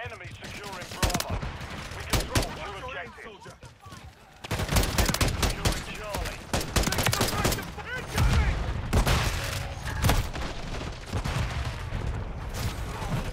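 Rapid gunfire cracks close by.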